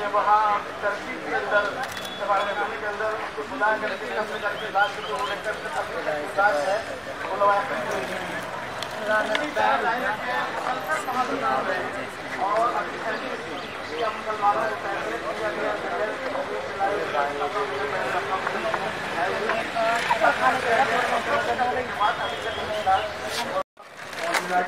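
A crowd of men and women talk and chant nearby outdoors.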